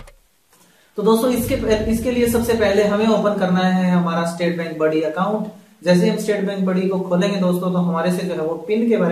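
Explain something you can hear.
A young man talks calmly and clearly into a close microphone.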